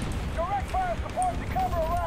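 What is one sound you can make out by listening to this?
Gunfire cracks in short bursts nearby.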